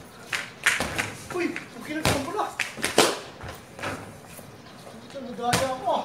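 A basketball clangs off a hoop's rim.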